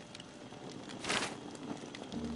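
A sheet of paper rustles as it is picked up.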